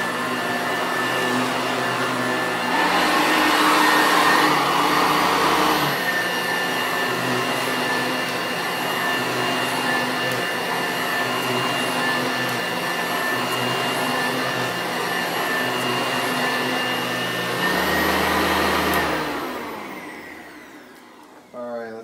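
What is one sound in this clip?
An upright vacuum cleaner hums loudly over carpet, then winds down.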